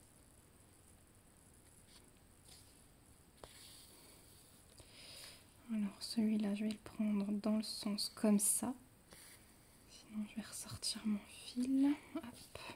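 Thread rasps softly as it is pulled through stiff fabric.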